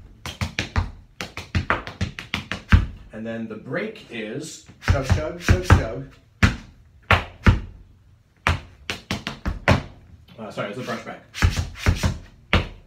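Tap shoes click and strike rhythmically on a wooden board.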